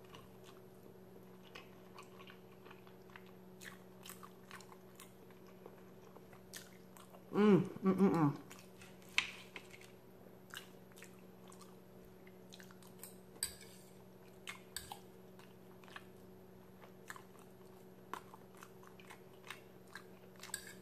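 A woman chews food with soft, wet smacking sounds close to a microphone.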